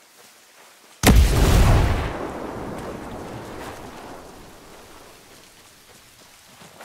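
An explosion booms loudly and slowly rumbles away.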